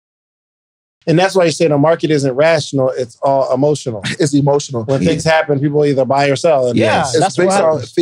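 A man speaks into a microphone with animation, close by.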